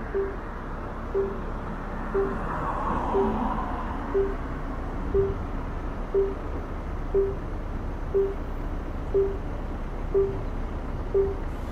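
A pedestrian crossing signal beeps steadily once every second.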